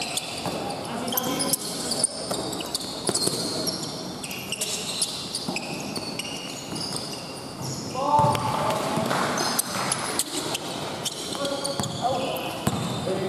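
Voices of young players call out and echo around a large hall.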